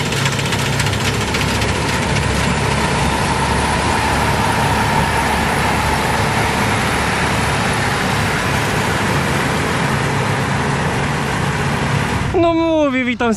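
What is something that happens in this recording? A combine harvester's engine roars steadily close by.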